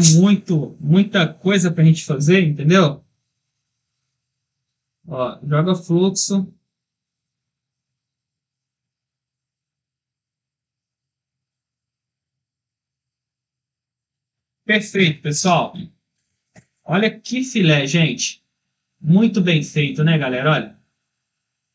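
A man talks calmly and closely into a microphone, pausing between phrases.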